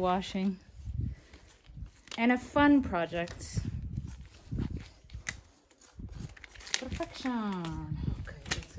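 A rubber glove crinkles and snaps as it is handled.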